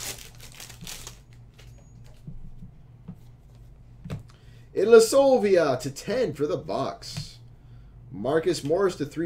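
Trading cards rustle and slide against each other in hands.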